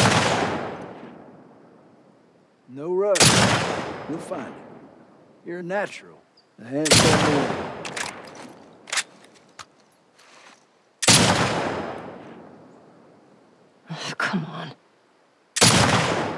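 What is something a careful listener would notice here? A rifle fires loud single shots that echo and roll away outdoors.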